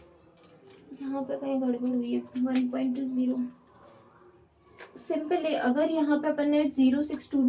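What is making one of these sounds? A young woman speaks close by, explaining calmly.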